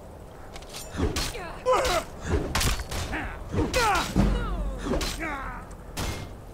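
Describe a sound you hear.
Metal blades clash and strike in a fast fight.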